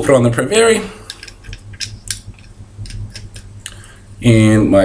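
Small plastic parts click in a young man's hands.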